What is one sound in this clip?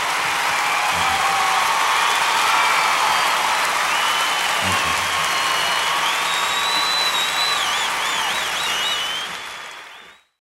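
A man speaks through a microphone on a stage.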